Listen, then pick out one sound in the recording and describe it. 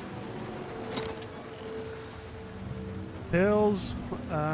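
A suitcase latch clicks open.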